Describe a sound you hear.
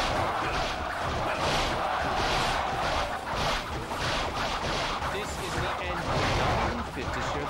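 A crowd of soldiers shouts in a loud battle din.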